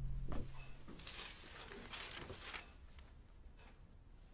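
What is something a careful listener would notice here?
Paper rustles as a sheet is picked up and unfolded.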